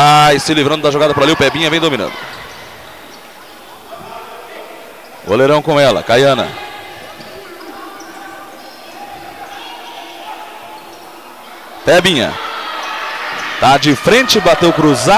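Sneakers squeak on an indoor court floor.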